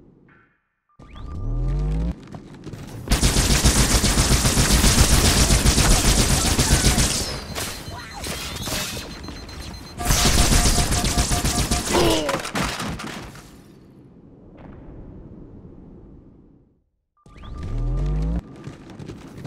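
A weapon whirs up as it is readied.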